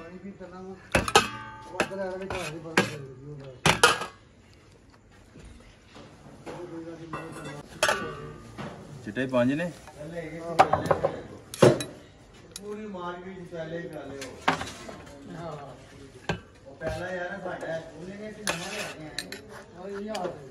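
A metal ladle clinks and scrapes against a metal plate.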